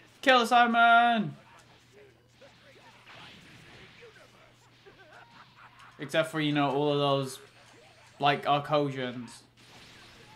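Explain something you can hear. Energy blasts whoosh and crackle during a fight.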